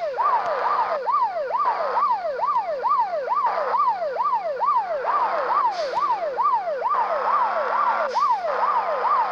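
A police siren wails, rising and falling quickly.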